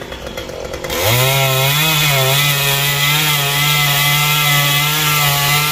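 A chainsaw engine roars steadily, cutting into wood.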